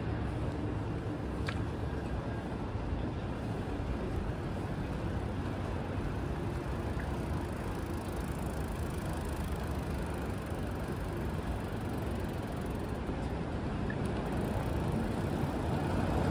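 City traffic hums steadily along a street.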